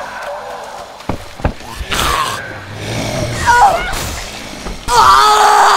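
A heavy weapon strikes flesh with wet thuds.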